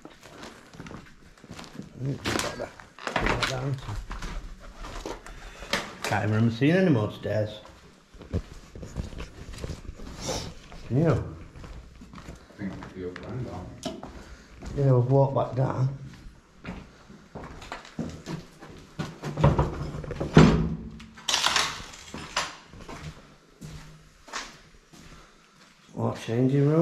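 Footsteps crunch on gritty debris.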